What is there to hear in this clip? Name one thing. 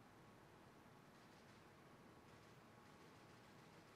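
Footsteps tread slowly across a hard floor in a large hall.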